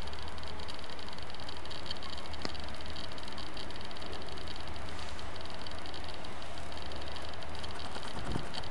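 Water splashes and trickles onto the ground.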